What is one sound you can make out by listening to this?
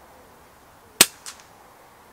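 An air rifle fires with a sharp, short crack.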